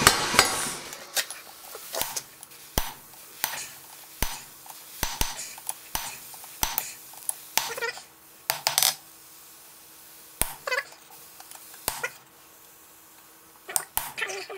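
A hammer strikes metal on an anvil with sharp ringing blows.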